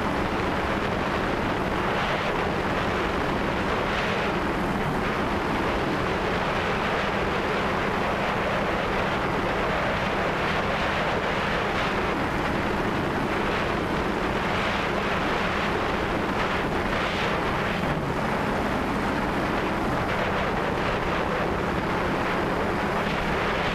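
Wind rushes over a microphone outdoors.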